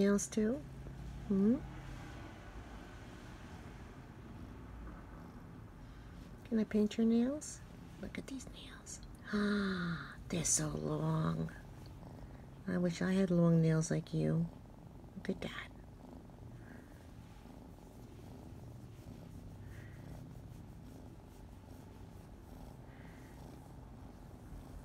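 A cat purrs softly.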